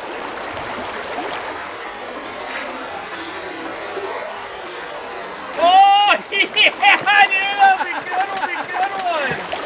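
A shallow river flows and gurgles over stones.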